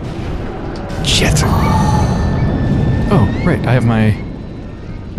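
A heavy magical blast whooshes and rumbles.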